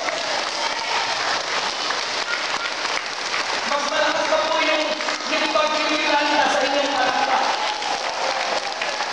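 A large crowd claps along in a big echoing hall.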